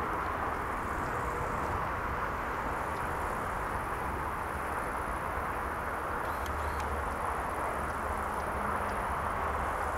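A jet airliner roars steadily in the distance as it approaches.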